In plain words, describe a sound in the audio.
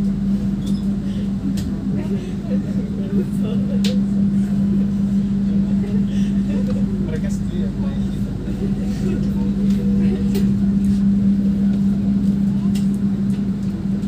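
A train engine hums steadily from inside a moving carriage.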